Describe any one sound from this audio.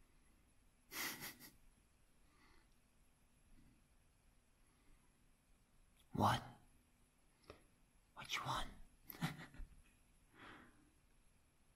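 A dog gives short, whining howls close by.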